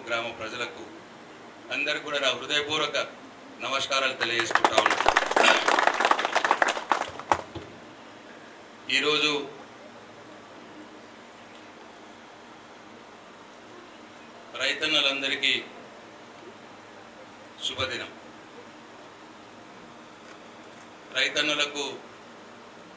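A middle-aged man speaks with animation into a microphone, his voice carried over loudspeakers in short bursts.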